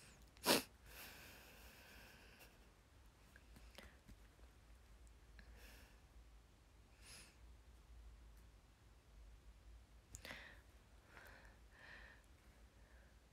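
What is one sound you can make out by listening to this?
A young girl talks softly and close by.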